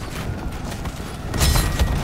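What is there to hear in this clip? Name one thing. Swords clash in a fight.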